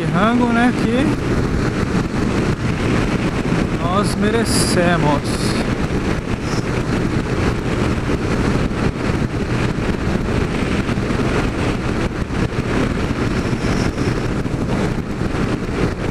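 Wind roars steadily past a moving motorcycle.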